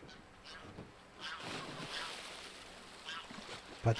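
Water splashes as a man jumps in.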